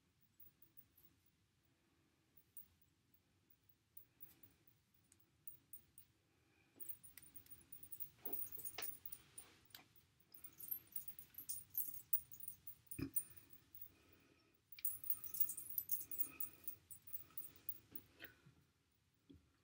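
Hair rustles and crackles softly close by as it is braided.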